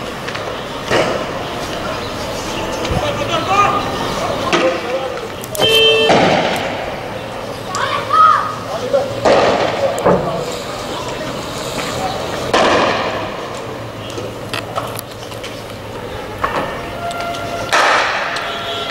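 Loud bangs go off in the street, echoing off walls.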